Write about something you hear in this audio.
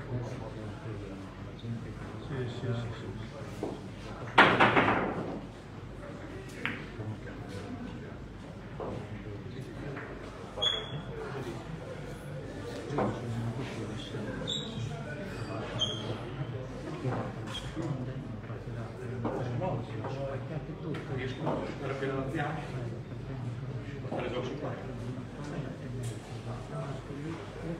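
Several men talk quietly in the background.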